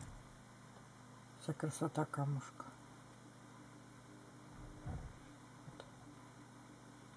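Fingers rustle softly against a small velvet box.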